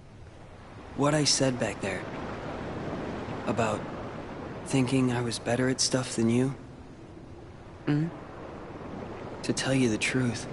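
A teenage boy speaks quietly and hesitantly, close by.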